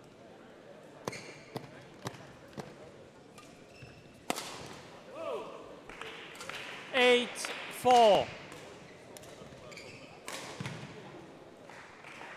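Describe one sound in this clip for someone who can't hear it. A racket sharply strikes a shuttlecock several times in a large echoing hall.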